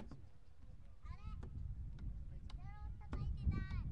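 Young girls call out to each other outdoors, some way off.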